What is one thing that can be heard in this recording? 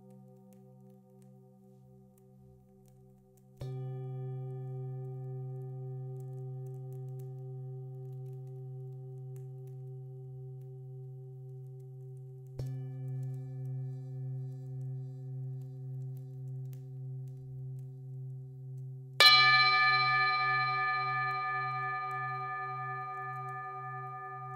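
Singing bowls ring with a deep, steady, wavering hum.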